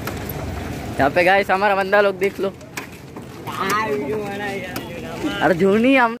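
A young man sings out loudly nearby with drawn-out notes.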